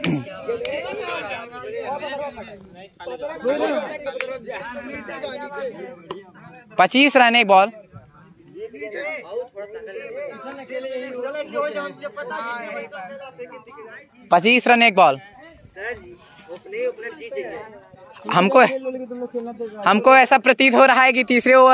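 Teenage boys talk and call out to each other outdoors.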